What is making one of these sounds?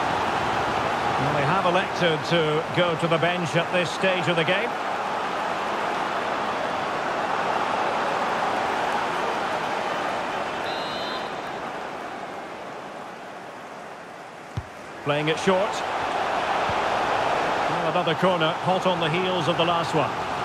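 A large stadium crowd roars and chants steadily.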